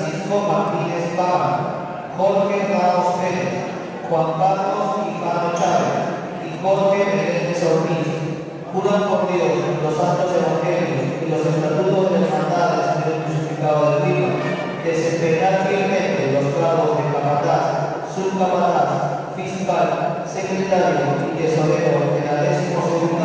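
A group of men recite together in unison.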